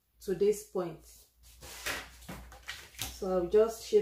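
A ruler slides and taps onto paper.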